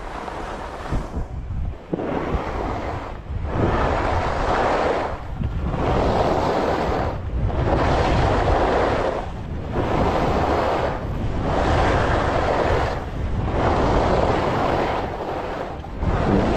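Skis scrape and swish over packed snow in rhythmic turns.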